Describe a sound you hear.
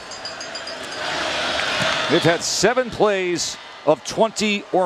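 A large crowd cheers in an open stadium.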